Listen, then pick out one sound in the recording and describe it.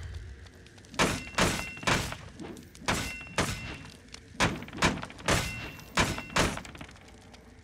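A blade strikes wooden dummies with sharp, rapid whacks.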